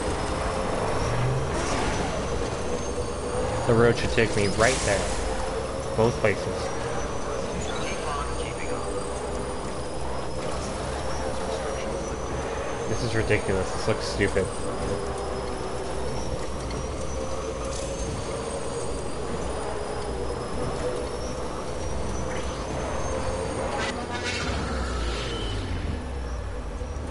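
A motorbike engine hums steadily as the bike rides along.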